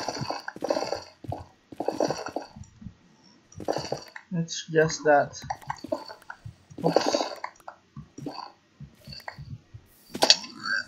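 Lava pops and bubbles.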